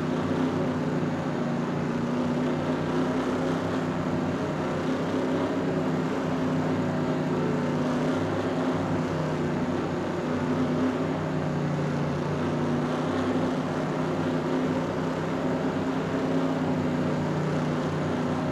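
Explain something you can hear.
A race car engine drones loudly at a steady high speed.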